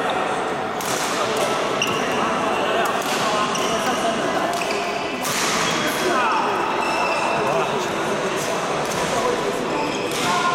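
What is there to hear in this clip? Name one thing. Men call out across a large echoing hall.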